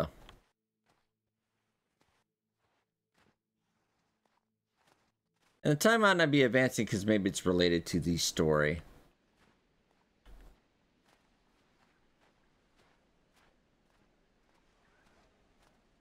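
Boots crunch through snow.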